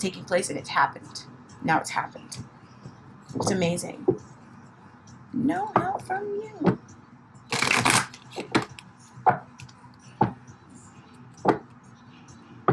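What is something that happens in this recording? Playing cards are shuffled and snapped by hand.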